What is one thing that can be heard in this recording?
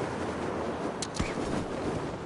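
A body lands with a sudden thud on the ground.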